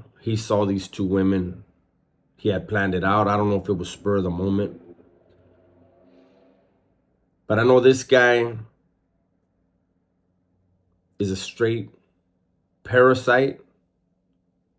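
A man speaks emphatically in short bursts, close to a microphone.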